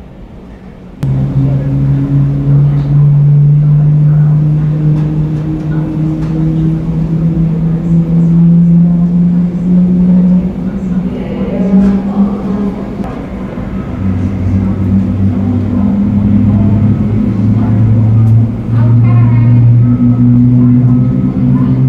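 A jet airliner's engines hum steadily as it taxis slowly past.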